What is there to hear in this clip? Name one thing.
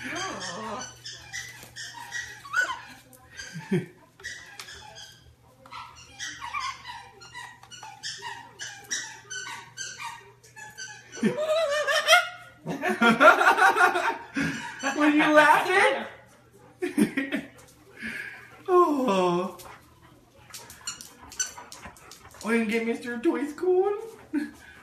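Two macaws chatter and squawk.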